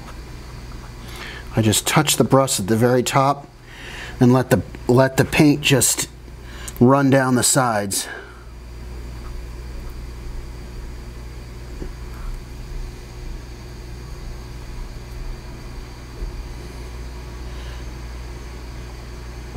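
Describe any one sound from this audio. A brush dabs and taps lightly on plastic.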